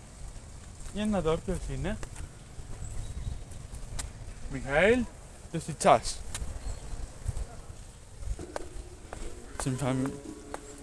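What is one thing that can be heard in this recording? A young man speaks close by in short, animated bursts.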